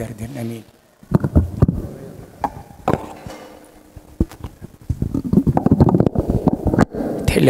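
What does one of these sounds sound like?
An elderly man speaks through a microphone in an echoing hall.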